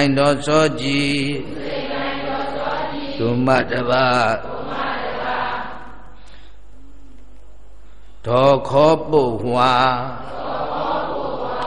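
An elderly man chants in a steady reading voice through a microphone and loudspeaker.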